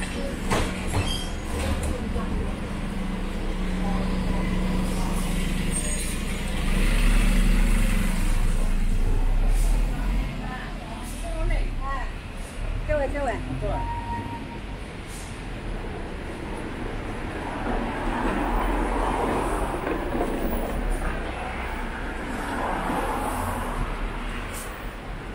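Light traffic passes along a street outdoors.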